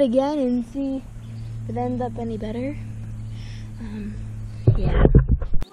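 A young girl talks close to the microphone with animation.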